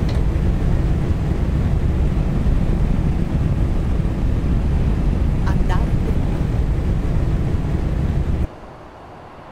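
A truck engine drones low and steady from inside the cab.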